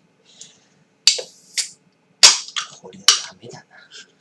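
A drink can's tab clicks and hisses as the can snaps open.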